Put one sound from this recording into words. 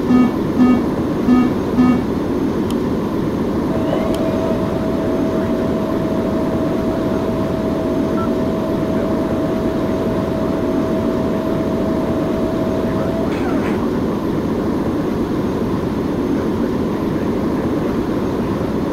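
The jet engines of a four-engine airliner roar.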